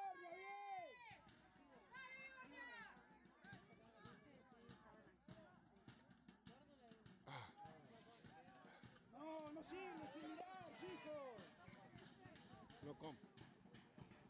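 A crowd of spectators shouts and cheers from a distance, outdoors.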